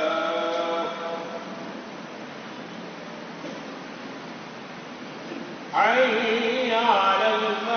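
An elderly man chants loudly into a microphone, heard through loudspeakers in an echoing hall.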